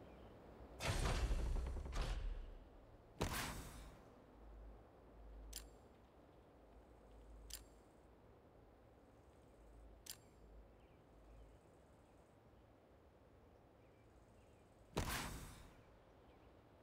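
Soft whooshes sweep in as menus open and close.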